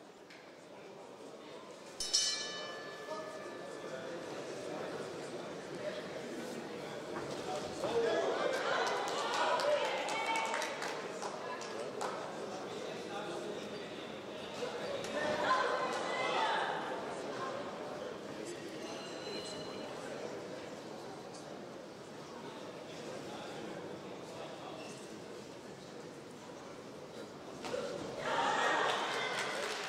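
A crowd in a large hall cheers and shouts in bursts.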